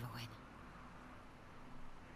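A young woman asks a question in a quiet, worried voice.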